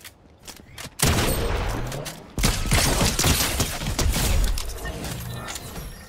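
Rapid gunfire rings out in loud bursts.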